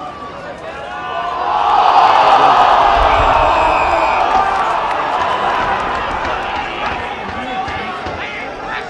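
A crowd cheers loudly from the stands, rising and then slowly fading.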